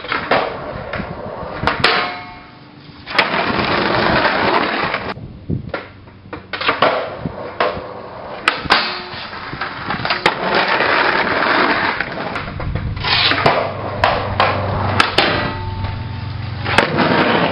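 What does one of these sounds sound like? Skateboard wheels roll over rough pavement.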